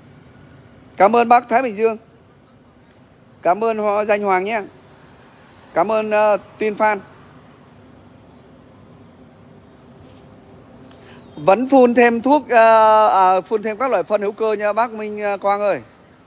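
A middle-aged man speaks close by in short bursts, calmly.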